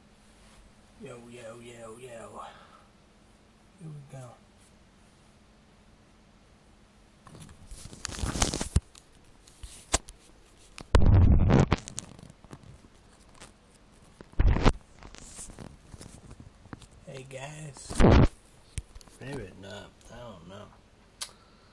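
A young man speaks casually, close to the microphone.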